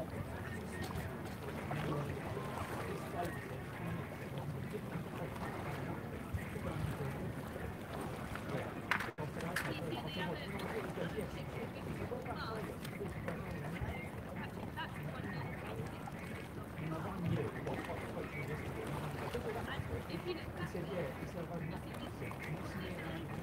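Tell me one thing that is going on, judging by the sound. Water laps gently against a wall.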